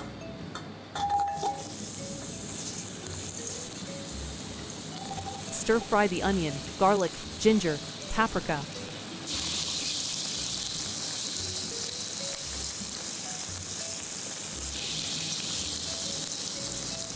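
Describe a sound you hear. Sliced onions sizzle steadily in hot oil.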